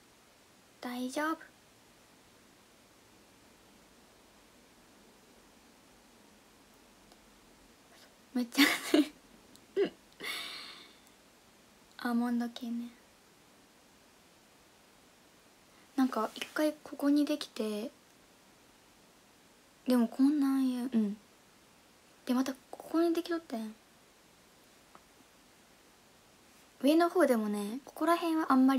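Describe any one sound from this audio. A young woman speaks softly and calmly in short bursts, close to a microphone.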